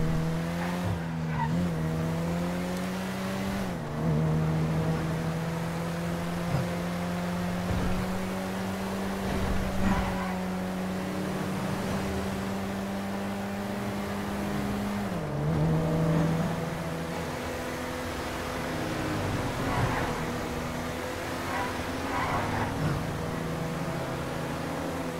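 A car engine hums steadily, dropping in pitch briefly as the gears shift.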